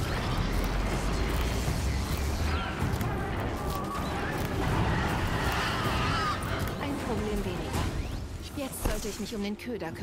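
A large machine creature screeches and crashes in battle.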